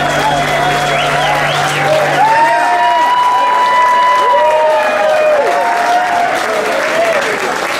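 A live band plays rock music loudly.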